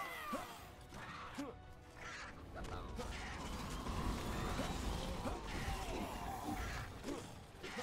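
Magic blasts and impacts crackle and boom in a fantasy battle.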